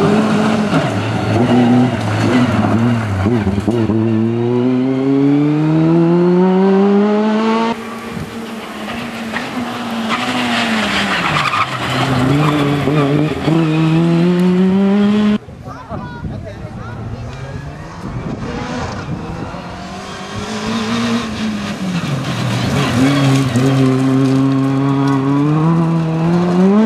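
Tyres crunch and spray loose gravel.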